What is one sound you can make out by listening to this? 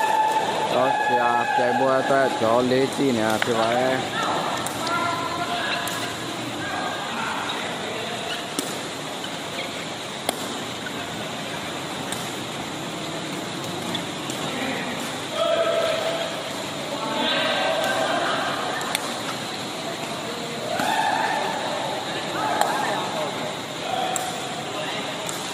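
Men call out and shout to each other in a large echoing hall.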